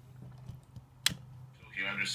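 A radio knob clicks sharply.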